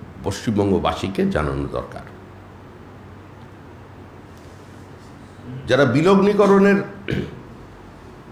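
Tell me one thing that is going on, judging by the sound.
A middle-aged man speaks into a microphone in short bursts with pauses.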